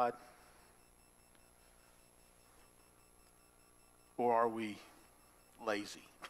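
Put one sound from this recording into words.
A man speaks slowly and calmly into a microphone, in short phrases with long pauses.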